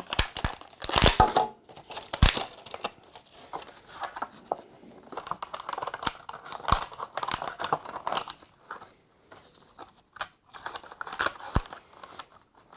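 Plastic clicks and snaps as a blister is pried open.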